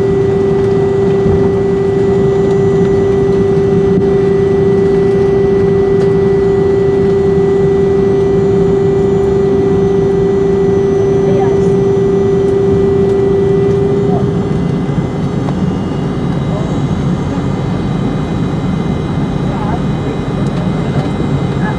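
A jet engine roars steadily from close by.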